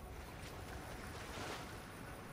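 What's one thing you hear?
Water splashes as a figure wades in.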